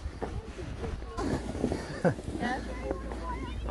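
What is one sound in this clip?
Plastic sleds scrape and hiss over snow.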